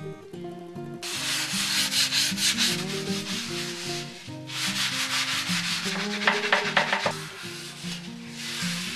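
A sponge scrubs rhythmically against a wooden board.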